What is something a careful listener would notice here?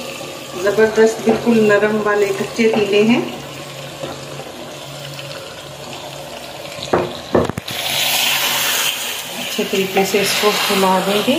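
A wooden spoon stirs and scrapes inside a clay pot.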